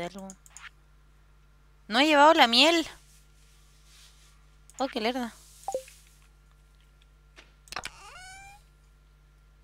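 Short electronic chimes and blips play as menus open and close.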